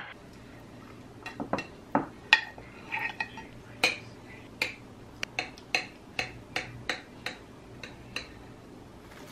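A knife taps and scrapes against a container and a plate while cutting soft jelly.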